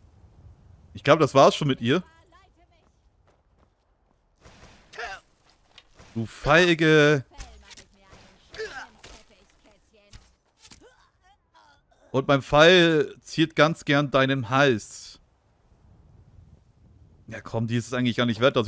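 A man talks with animation into a microphone, in bursts.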